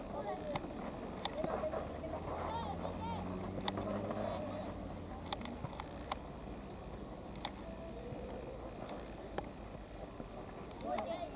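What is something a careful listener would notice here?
Young boys shout to each other across an open field.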